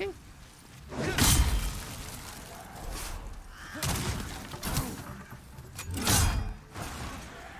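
A sword swings and strikes with a heavy whoosh.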